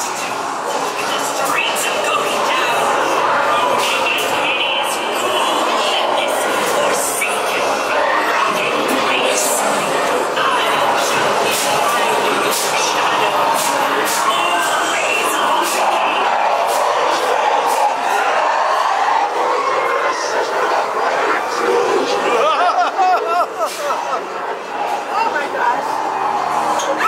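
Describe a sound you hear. A crowd of young people talks and shouts nearby.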